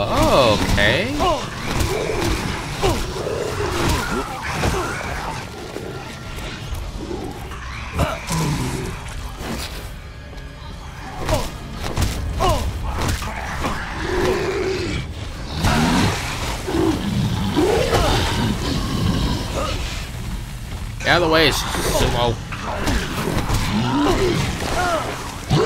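Fists thud against a creature's body.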